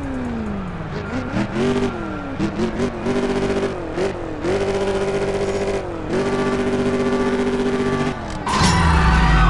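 A car engine revs in short bursts, then holds at a high steady whine.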